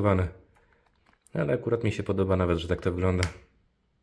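A small plastic handheld console clicks as it is flipped open.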